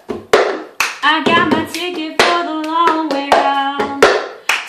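A young woman sings nearby.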